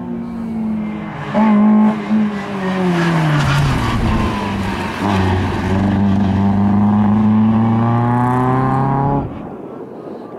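Tyres squeal on pavement as a car slides through a turn.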